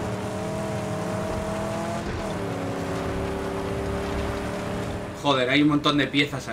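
A car engine roars steadily, shifting gear once.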